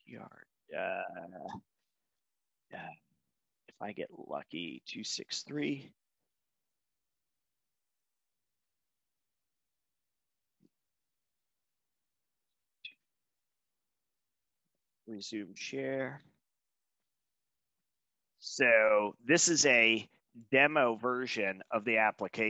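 A man speaks calmly and explains into a close microphone, with pauses.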